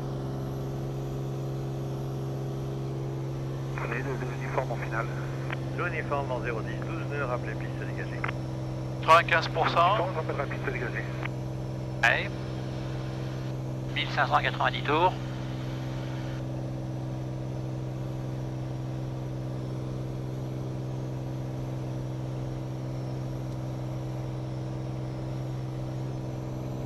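A small plane's propeller engine drones steadily inside the cabin.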